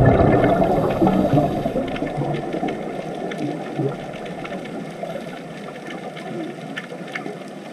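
Divers' breathing gear gurgles and bubbles underwater.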